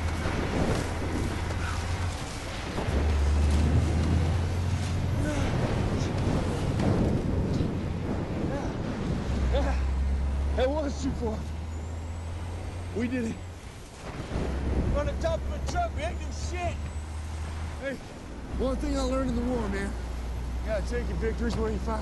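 Strong wind rushes loudly past outdoors.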